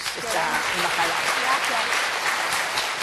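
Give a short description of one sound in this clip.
An elderly woman laughs and speaks with animation into a microphone.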